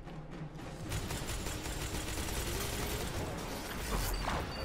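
Rapid gunfire rattles and bangs.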